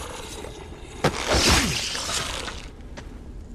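A knife stabs into a body with a heavy, wet thud.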